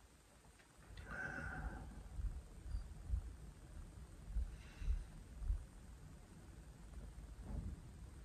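A middle-aged man speaks slowly and quietly, close by.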